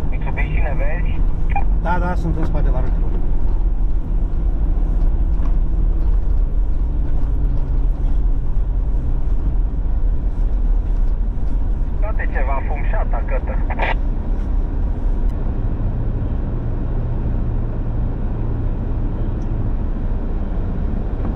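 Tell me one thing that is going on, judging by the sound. Tyres crunch over packed snow.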